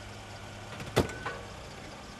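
A car door shuts with a sharp thud.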